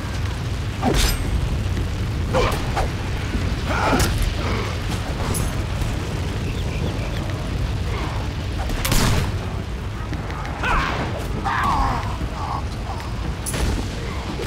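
Weapon strikes land with sharp thuds.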